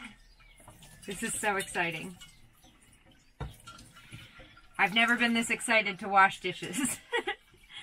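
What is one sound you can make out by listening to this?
A sponge scrubs a metal pot.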